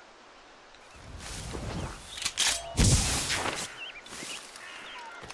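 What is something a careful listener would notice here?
Leaves rustle as a figure pushes through dense bushes.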